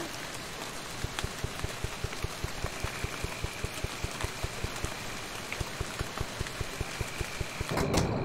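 Soft footsteps tap quickly and evenly in a video game.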